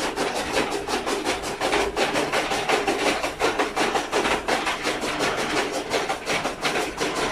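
A fodder chopping machine whirs and chops stalks with a rapid rhythmic clatter.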